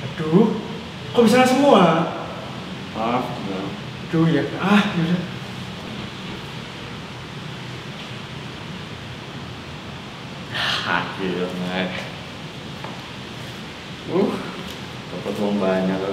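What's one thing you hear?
A teenage boy talks close by, in short bursts of speech.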